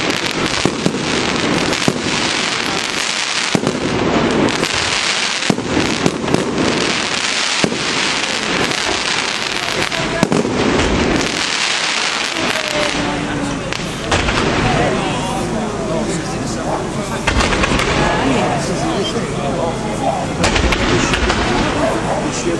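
Fireworks crackle and pop loudly in rapid bursts.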